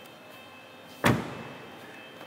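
A car door thumps shut.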